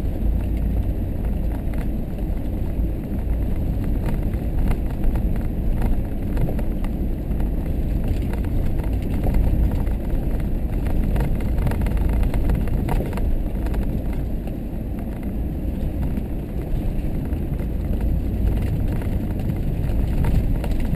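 Tyres roll and crunch over a rough, rocky dirt track.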